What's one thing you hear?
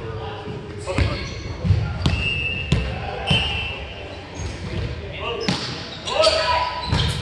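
A volleyball thumps off hands and arms in a large echoing gym.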